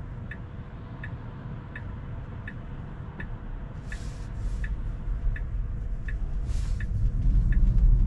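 A car's turn signal ticks evenly.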